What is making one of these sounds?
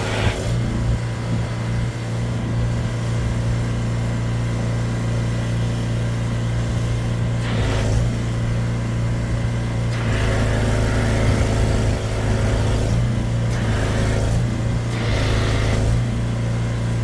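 Water churns and gurgles as a high-pressure hose jets into a flooded drain.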